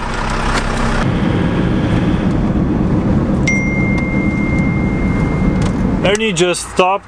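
A car engine hums steadily with road noise while driving.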